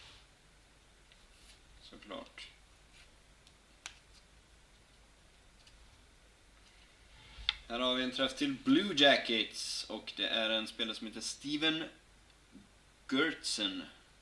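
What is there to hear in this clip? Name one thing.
Trading cards slide and tap against each other.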